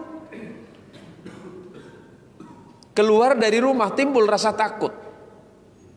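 A man speaks into a microphone, chanting in a loud, melodic voice with some echo.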